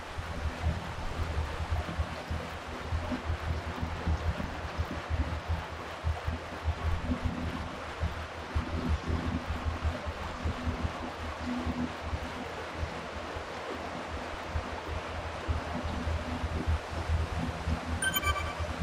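A stationary bike trainer whirs steadily under pedalling.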